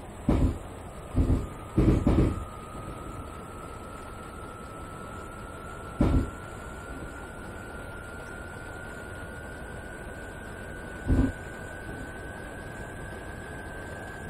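Rain patters on a train's windscreen.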